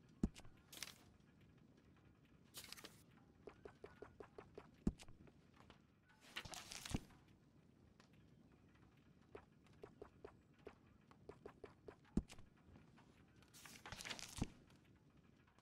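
Paper pages of a catalogue turn with a soft rustle.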